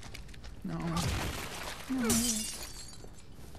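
A crossbow fires a bolt with a sharp twang.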